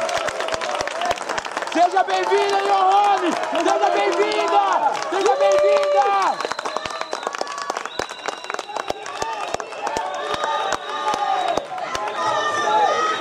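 A crowd shouts and chants loudly in a large hall.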